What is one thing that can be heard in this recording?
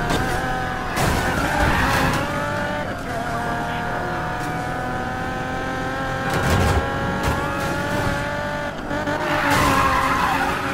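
Tyres screech as a car drifts around a bend.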